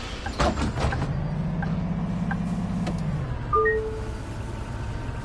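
A bus engine rumbles low and steady as the bus pulls away.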